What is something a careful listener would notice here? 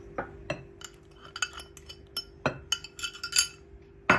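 Soft banana pieces plop into a bowl.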